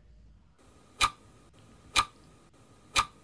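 A timer ticks once a second.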